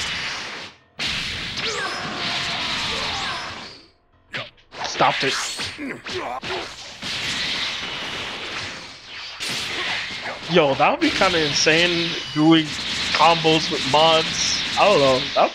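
Energy blasts whoosh and roar in quick bursts.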